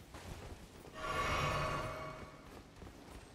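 A spell bursts with a crackling whoosh.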